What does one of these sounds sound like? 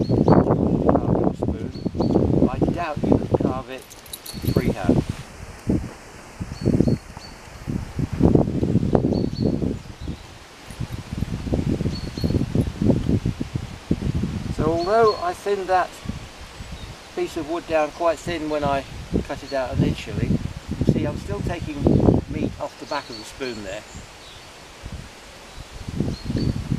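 An elderly man talks calmly and closely.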